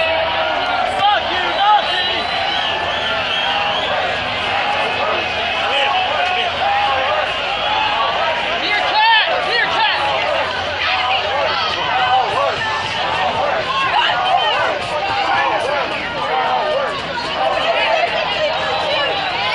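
A large crowd of men and women shouts and chants outdoors, close by.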